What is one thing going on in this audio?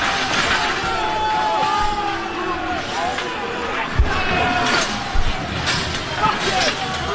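A crowd shouts and jeers loudly outdoors.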